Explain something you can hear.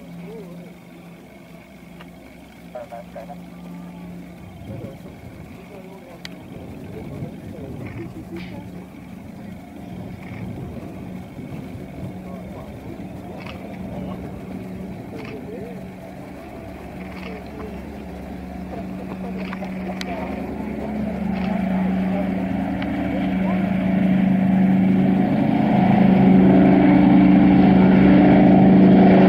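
Propeller engines drone steadily, growing louder as a plane climbs closer overhead.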